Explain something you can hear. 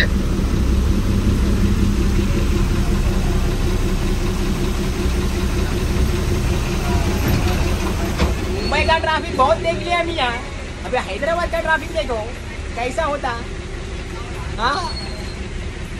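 An engine rumbles steadily as a vehicle drives along.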